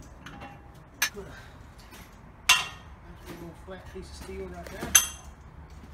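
Metal parts clank sharply against each other.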